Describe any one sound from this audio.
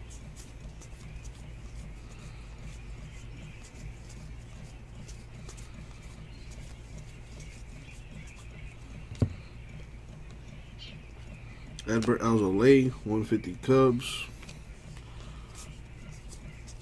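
Trading cards slide and flick against each other in a person's hands.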